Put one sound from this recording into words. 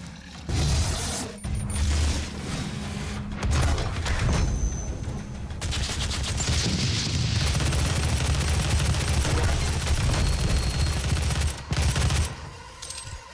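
A shotgun fires with heavy booming blasts.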